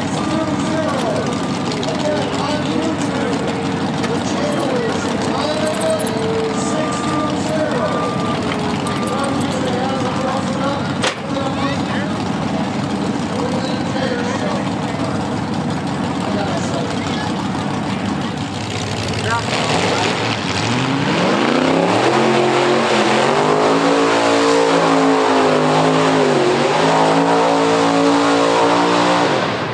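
A loader's diesel engine rumbles and clatters nearby.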